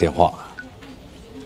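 A young man speaks calmly and quietly.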